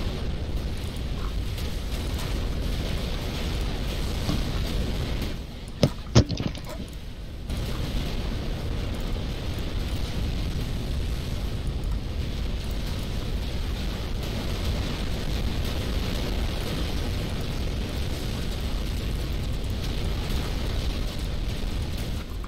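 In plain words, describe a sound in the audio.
Explosions rumble and boom in a battle.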